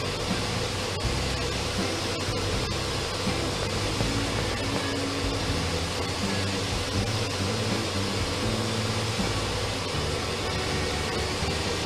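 A pressure washer sprays water with a steady hiss.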